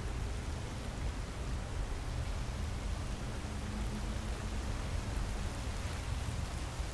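A waterfall rushes steadily.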